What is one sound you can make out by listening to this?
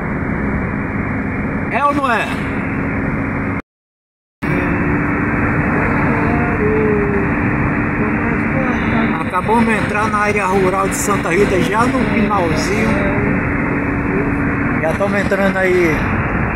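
A car engine hums steadily with tyre noise on the road.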